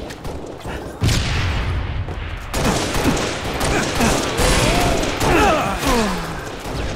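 Gunshots crack and boom.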